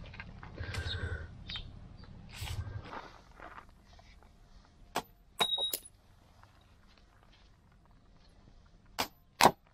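Metal parts clink and knock against each other.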